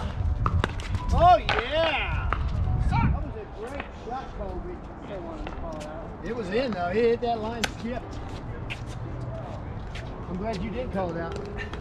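Women talk and call out to each other nearby.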